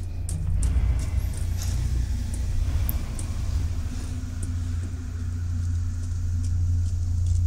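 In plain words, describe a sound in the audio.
Slow footsteps thud softly on a hard floor.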